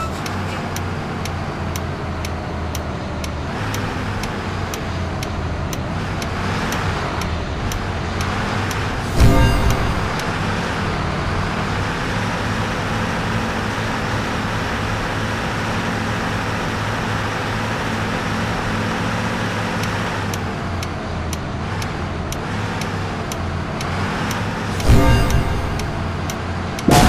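A bus engine hums steadily as it drives.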